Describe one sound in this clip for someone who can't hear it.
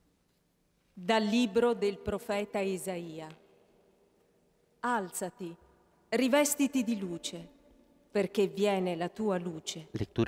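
A middle-aged woman reads out calmly into a microphone in a large echoing hall.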